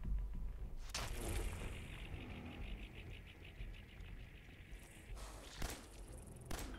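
A gunshot bangs sharply.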